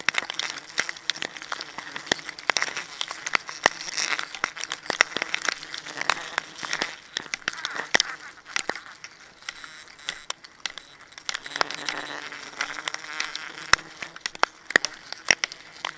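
A gloved hand scrapes and rubs against rough tree bark.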